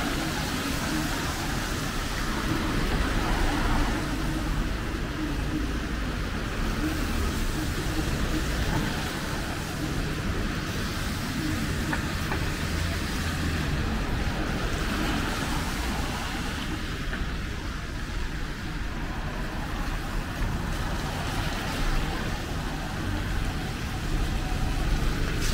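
Car tyres hiss on wet road as cars pass close by.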